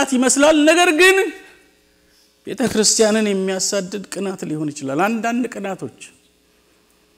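A man preaches loudly and with animation through a microphone in an echoing hall.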